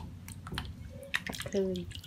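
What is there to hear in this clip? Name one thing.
Water splashes softly in a bowl.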